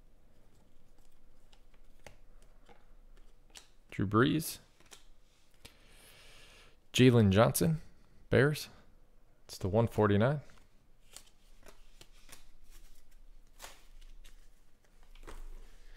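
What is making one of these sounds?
Stiff trading cards rustle and click as hands sort through them.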